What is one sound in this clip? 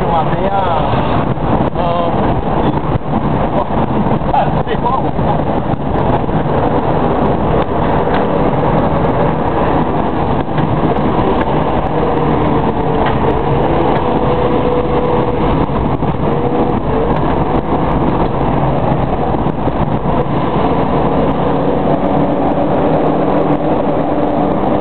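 A car's engine and tyres drone from inside as it drives along.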